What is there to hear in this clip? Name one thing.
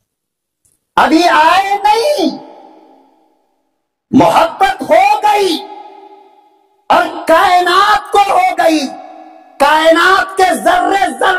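An elderly man preaches forcefully into a microphone, his voice loud and echoing through loudspeakers.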